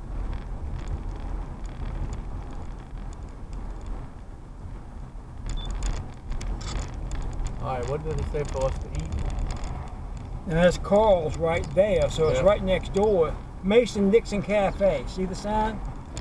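A car drives along an asphalt street, its tyres rumbling, heard from inside the car.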